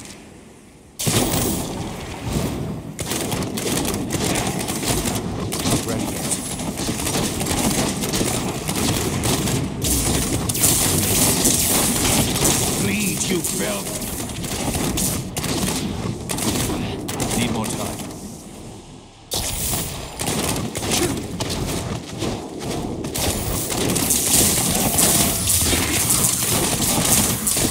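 Magic blasts crackle and explode in rapid bursts.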